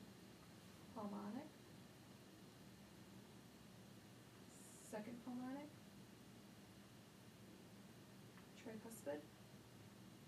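A woman speaks in short, calm phrases close by.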